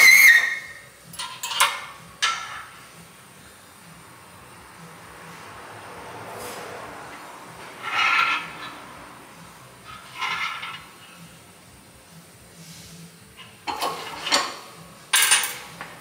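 Metal parts clink and scrape on a press.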